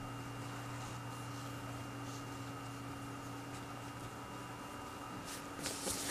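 A brush dabs softly on paper.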